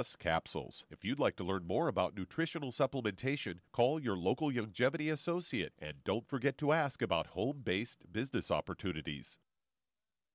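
A man talks steadily through a microphone.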